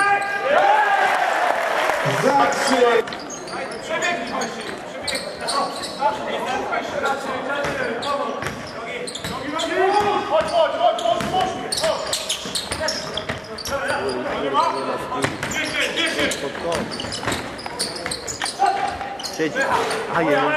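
A basketball bounces on a wooden floor, echoing in a large hall.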